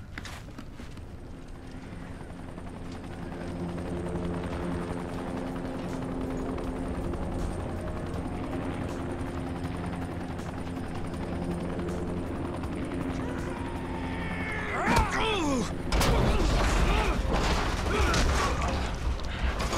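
A helicopter hovers nearby, its rotor and engine whirring steadily.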